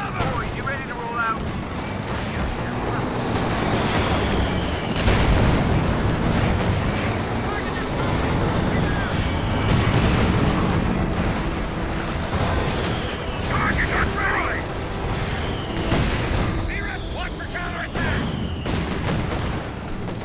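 Gunfire crackles in bursts.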